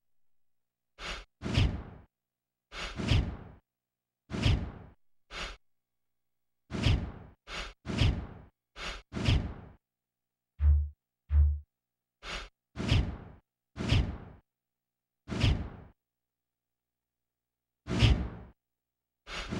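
Short swooshing video game menu sounds play with each selection.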